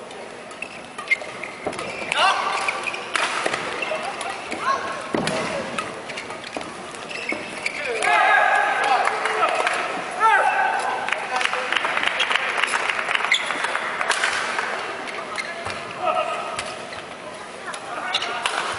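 Rackets strike a shuttlecock back and forth in a sharp, quick rally.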